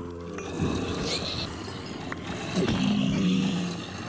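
A creature grunts as it is struck and killed.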